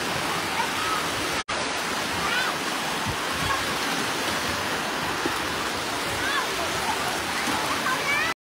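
Children shout and squeal in the distance.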